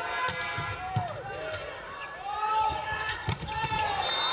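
A volleyball is struck hard with a sharp smack.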